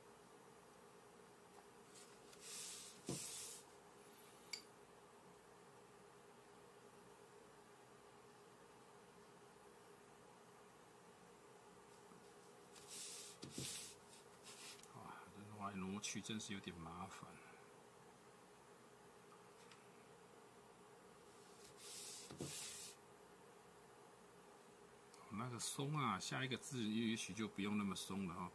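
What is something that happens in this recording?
A brush strokes softly across paper.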